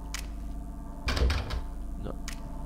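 A locked door handle rattles.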